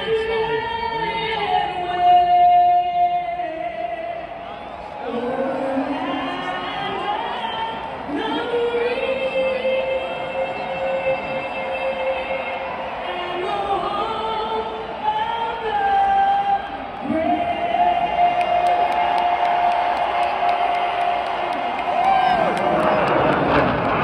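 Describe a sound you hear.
A singer's voice rings out slowly through loudspeakers across a large open stadium.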